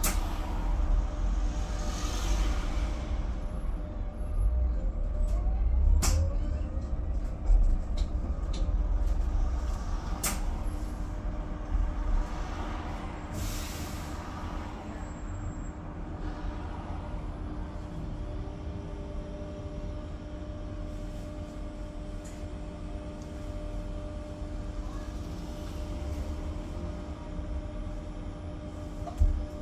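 A bus engine hums and rumbles steadily inside the cabin.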